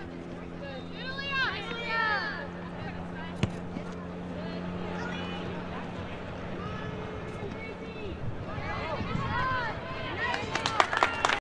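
A soccer ball is kicked with dull thuds.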